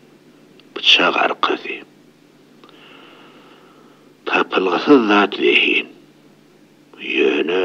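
An elderly man speaks with animation, close by.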